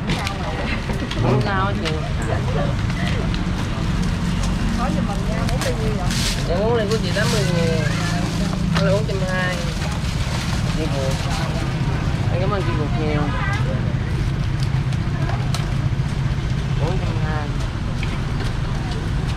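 A busy outdoor crowd murmurs in the background.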